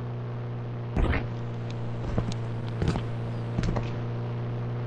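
A motorcycle engine revs in short bursts.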